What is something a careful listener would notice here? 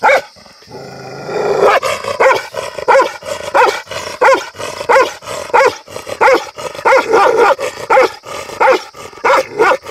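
A dog barks repeatedly nearby.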